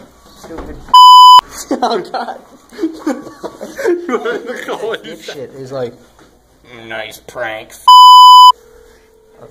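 A phone gives a loud beep.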